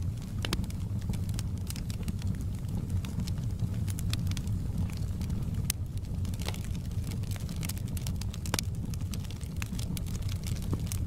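Flames roar with a low steady rumble.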